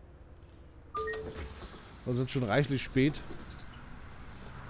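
Bus doors hiss open.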